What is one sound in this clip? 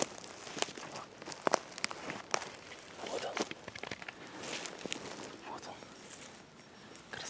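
Footsteps crunch on dry twigs and pine needles.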